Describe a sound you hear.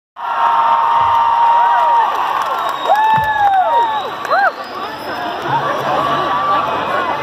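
A band plays loudly through large speakers.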